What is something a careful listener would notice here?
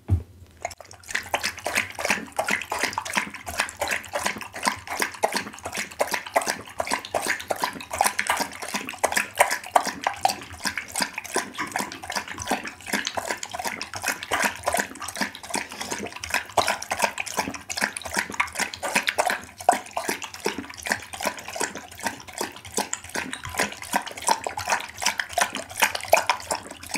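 A dog laps up liquid quickly and wetly, close to a microphone.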